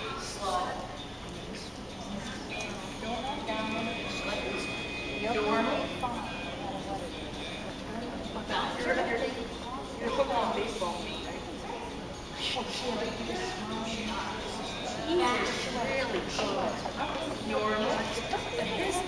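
A woman talks encouragingly to a dog in an echoing hall.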